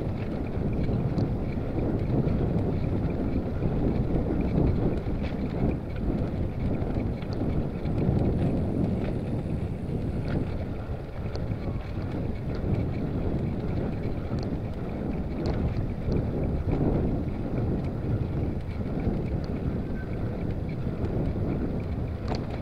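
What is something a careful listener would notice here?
Bicycle tyres roll and rattle over pavement.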